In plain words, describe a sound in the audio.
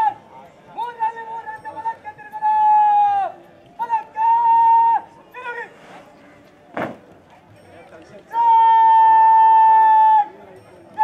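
A man shouts long drawn-out parade commands through a loudspeaker, outdoors.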